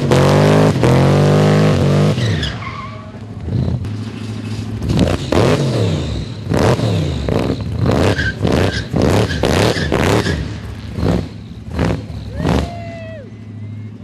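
A car engine roars and revs hard, rising and falling repeatedly.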